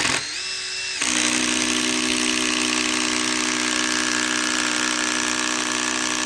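A cordless drill whirs steadily as it drives into wood.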